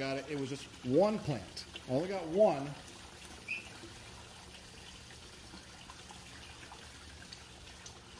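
Water splashes steadily into a pond.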